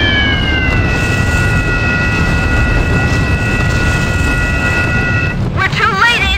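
Falling bombs whistle.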